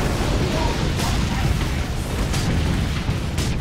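Gunfire bursts in loud sharp cracks.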